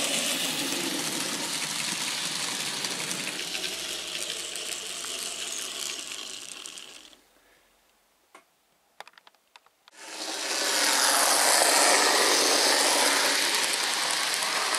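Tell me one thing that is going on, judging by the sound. A model train rumbles and whirs along its track.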